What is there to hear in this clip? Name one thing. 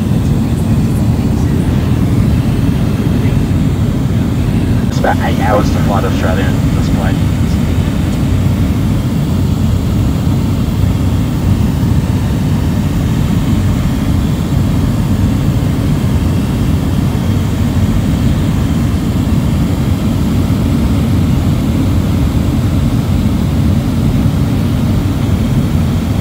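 A light aircraft's piston engine drones, heard from inside the cabin.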